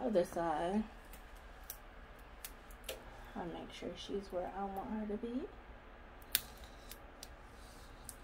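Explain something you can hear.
A strip of tape is peeled and pressed down by hand.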